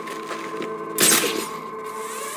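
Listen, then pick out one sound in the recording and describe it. A grappling line fires with a sharp whoosh.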